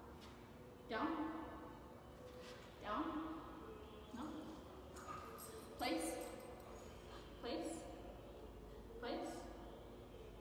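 A woman gives short, clear commands in an echoing room.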